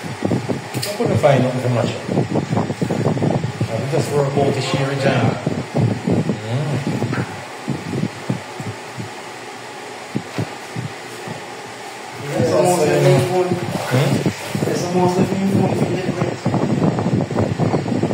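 A man scrubs and scrapes tiles with a rag.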